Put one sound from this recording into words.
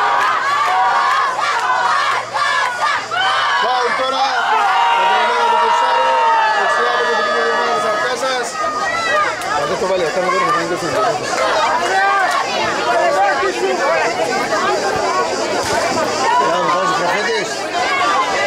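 Young players shout to each other across an open outdoor pitch.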